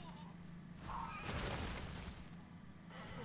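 A large beast roars.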